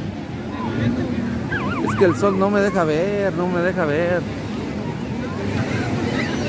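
A crowd of people chatters across an open beach.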